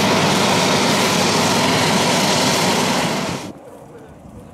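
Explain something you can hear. A small propeller plane's engine roars loudly at full power as it takes off.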